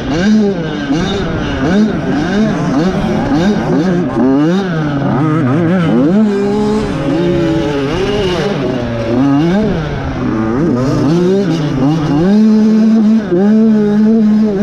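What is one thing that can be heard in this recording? Other dirt bike engines whine nearby.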